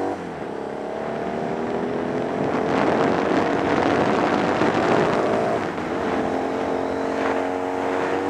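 A motorcycle engine roars steadily, rising and falling in pitch as it accelerates and shifts gears.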